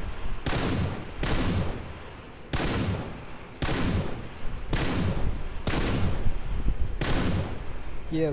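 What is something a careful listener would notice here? A rifle fires several loud shots, each followed by a ringing echo.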